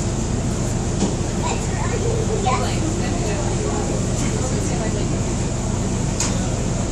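A boat engine rumbles steadily, outdoors on open water.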